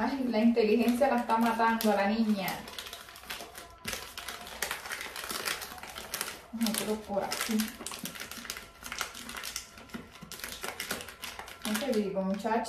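Jars and packets clink and rustle as hands rummage through a drawer.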